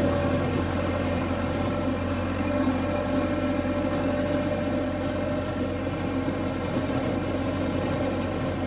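A tractor engine hums steadily in the distance.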